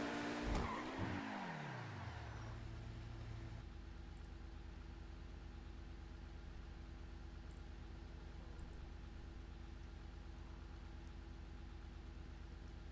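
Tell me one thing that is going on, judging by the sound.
A sports car engine slows down and settles into a low steady idle.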